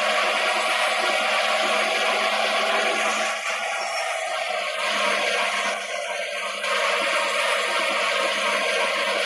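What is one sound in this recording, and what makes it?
Tyres roll along the road with a steady rushing noise.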